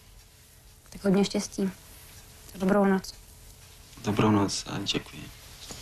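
A woman answers in a friendly voice.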